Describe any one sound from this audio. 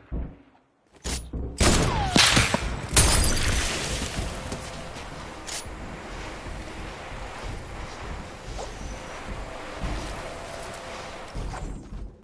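Game sound effects of wooden pieces snapping into place clatter loudly.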